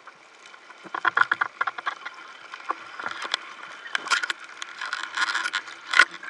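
Air bubbles gurgle and rise underwater.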